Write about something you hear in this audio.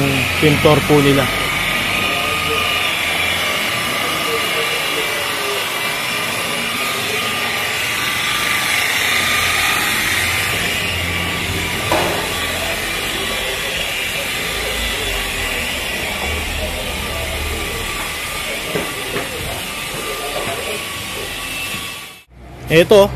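A rotary polisher whirs steadily against metal.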